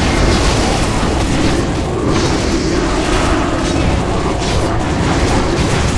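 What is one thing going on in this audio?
Spells crackle and blast in a game battle.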